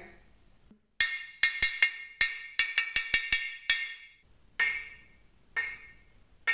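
A wooden spoon taps a hanging metal lid, which rings brightly.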